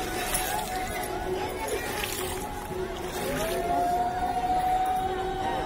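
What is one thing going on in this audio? Water splashes as a child wades through it.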